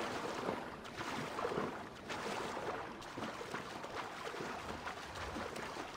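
A swimmer splashes through water.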